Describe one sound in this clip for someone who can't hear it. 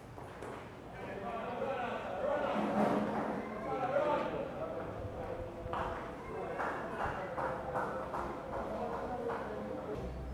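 Men call out to each other across an open field, heard from a distance.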